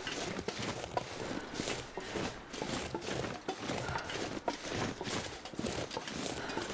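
Footsteps crunch steadily through snow.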